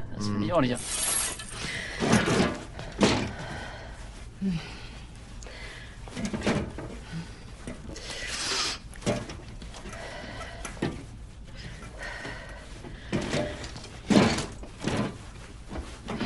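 A woman gasps and speaks close by.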